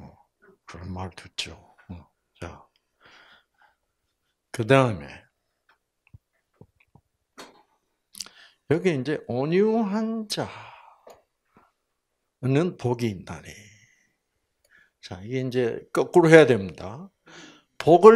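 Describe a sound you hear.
An elderly man speaks calmly into a microphone, in phrases with pauses.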